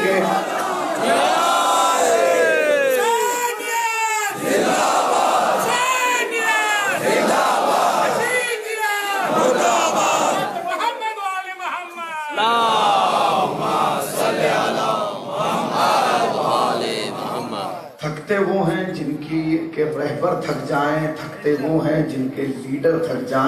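A man chants loudly through a loudspeaker in a large echoing space.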